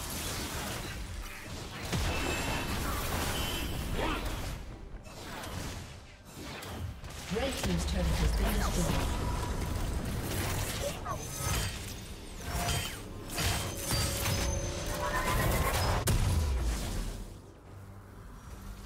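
Spell effects whoosh and crackle in a fast game fight.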